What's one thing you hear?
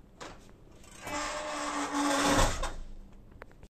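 A shopping cart's wheels rattle as it rolls across a tiled floor.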